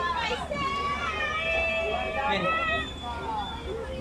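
A child calls out in a high voice.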